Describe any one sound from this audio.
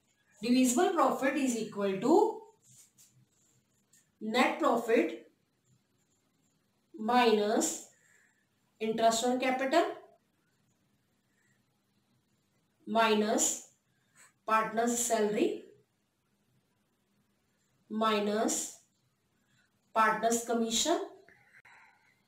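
A woman speaks calmly and clearly into a nearby microphone, in short phrases with pauses.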